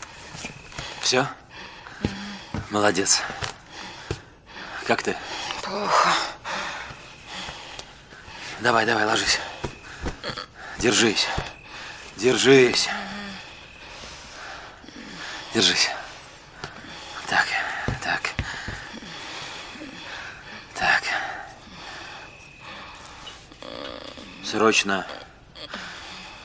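A man speaks softly and urgently at close range.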